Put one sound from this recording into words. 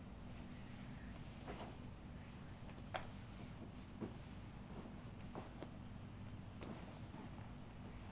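Hands knead and rub a bare leg with soft skin sounds.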